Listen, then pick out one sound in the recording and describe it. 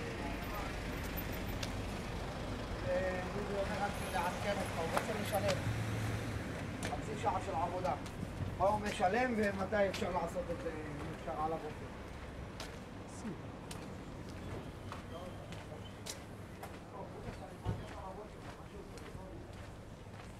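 A man talks close by, calmly and with pauses.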